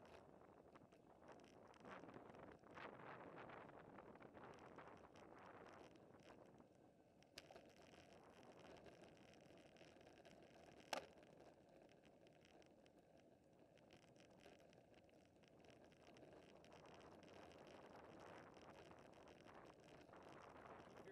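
Wind rushes past loudly, as if outdoors while riding.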